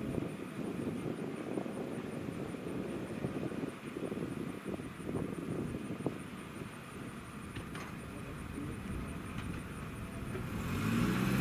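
A railway crossing bell rings rapidly and steadily.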